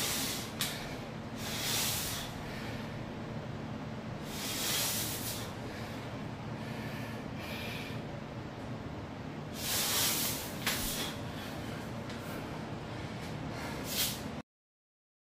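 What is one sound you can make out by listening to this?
A man breathes out hard with each pull-up.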